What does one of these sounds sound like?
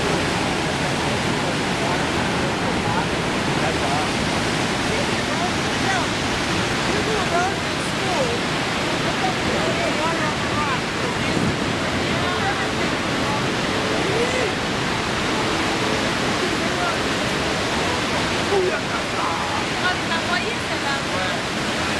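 A huge waterfall roars close by, loud and steady.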